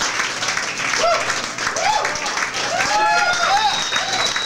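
Whistles ring out from a crowd.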